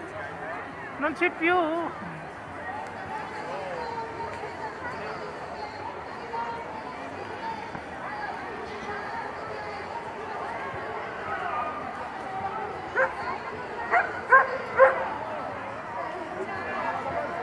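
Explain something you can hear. A crowd chatters outdoors throughout.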